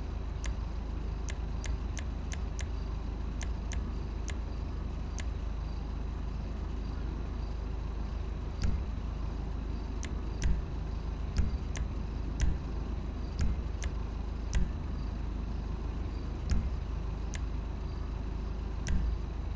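Short electronic menu clicks tick now and then.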